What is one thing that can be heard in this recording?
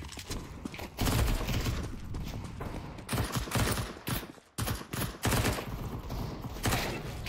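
Rapid gunshots crack in quick bursts.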